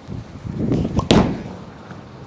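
A bowling ball thuds onto the lane.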